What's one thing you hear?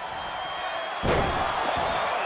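A heavy body slams onto a ring mat with a loud thud.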